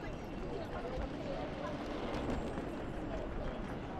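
A crowd of people murmurs outdoors.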